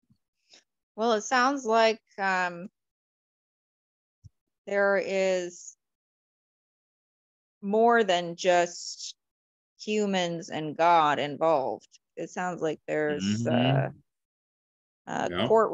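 A young woman speaks calmly over an online call, in short phrases with pauses.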